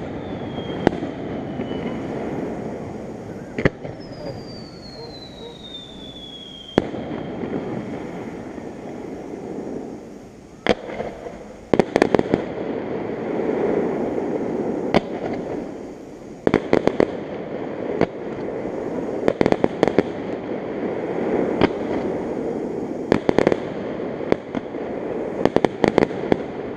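Fireworks burst with sharp booms that echo in the distance.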